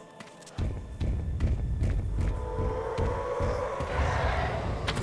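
A young woman talks casually into a microphone.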